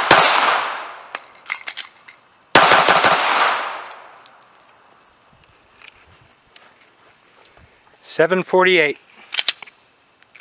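Pistol shots bang loudly outdoors and echo.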